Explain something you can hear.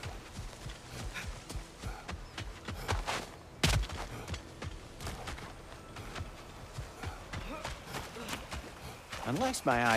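Footsteps crunch through rustling undergrowth.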